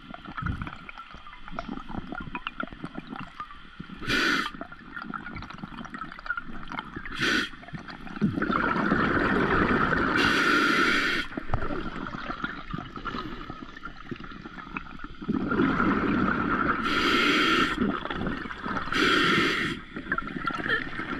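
Water crackles and rushes in a muffled underwater hush.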